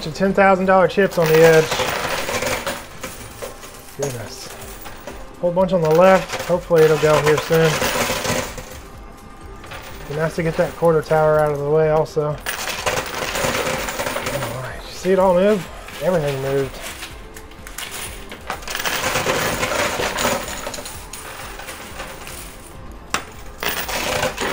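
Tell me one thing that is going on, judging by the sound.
Coins clink and clatter as they slide and drop.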